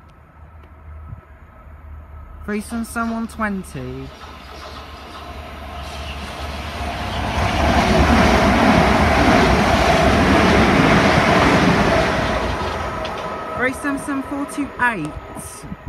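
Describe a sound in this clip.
An electric multiple-unit train passes through at speed.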